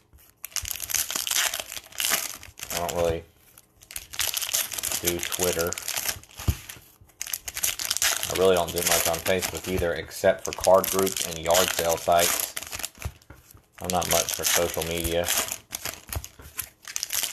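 A plastic wrapper crinkles and tears open.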